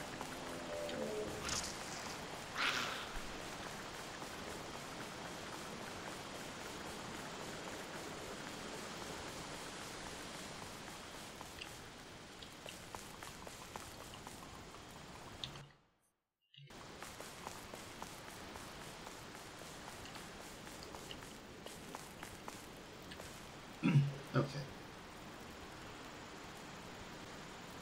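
Soft footsteps patter on a stone floor.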